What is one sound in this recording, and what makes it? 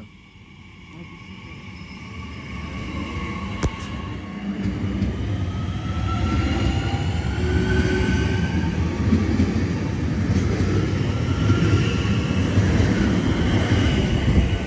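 An electric train pulls in close by with a rising rumble.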